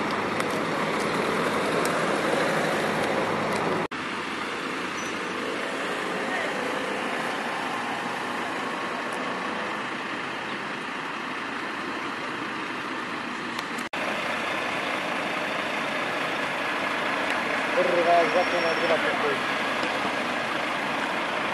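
Fire engines idle with a steady low rumble.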